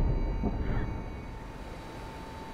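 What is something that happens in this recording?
An explosion roars and rumbles away.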